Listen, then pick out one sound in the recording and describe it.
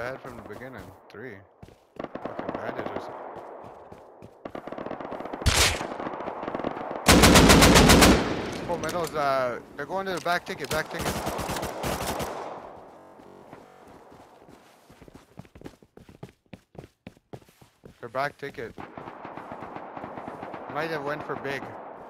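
Footsteps crunch over gravel and dirt.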